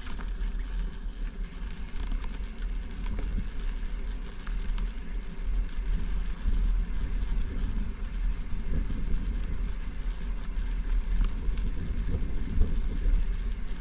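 Bicycle tyres roll and crunch over a gravel path.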